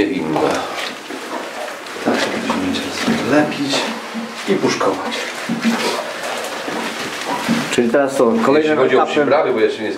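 A man talks calmly nearby.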